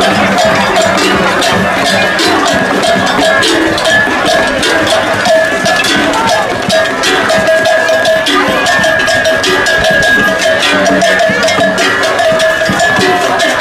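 A large crowd sings and chants outdoors.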